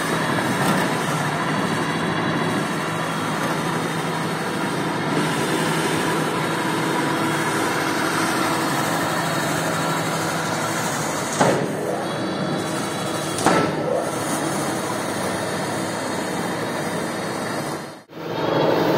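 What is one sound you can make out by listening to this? An electric motor hums and whirs steadily.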